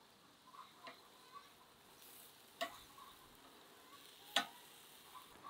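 Metal tongs clink against a grill.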